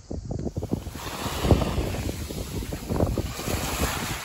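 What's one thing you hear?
Small waves lap gently at the shore.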